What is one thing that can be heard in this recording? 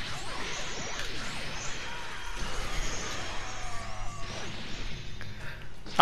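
Rapid punches and kicks thud and smack.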